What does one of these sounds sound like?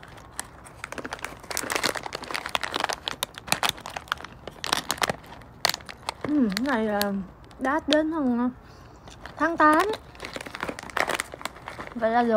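A foil snack bag crinkles and rustles loudly.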